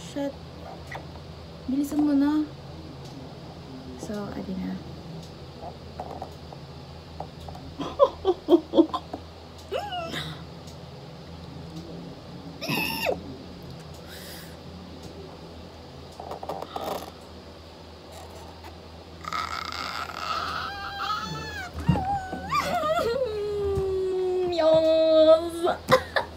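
A young woman speaks close by with excitement.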